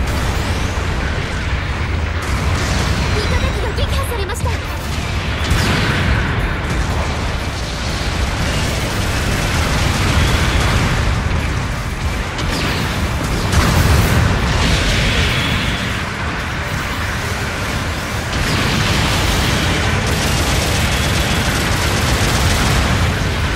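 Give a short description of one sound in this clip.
Heavy mechanical footsteps thud and clank.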